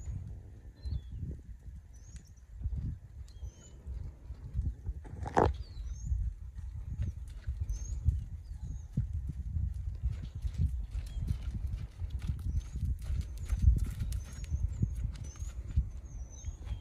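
A horse's hooves thud softly on sand, drawing closer.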